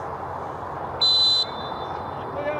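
A referee's whistle blows one short, sharp blast far off.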